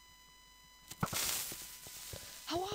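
A block of TNT explodes with a blast.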